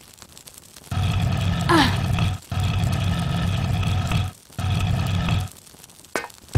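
A heavy stone block scrapes and grinds as it is pushed across a stone floor.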